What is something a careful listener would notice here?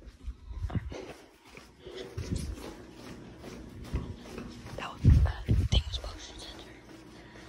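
Footsteps fall on a tiled floor in an echoing hallway.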